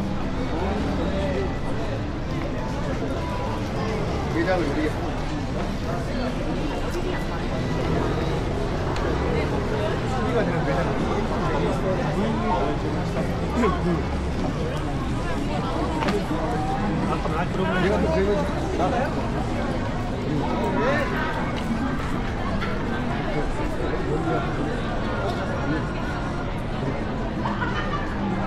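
Many people chatter all around in a busy street outdoors.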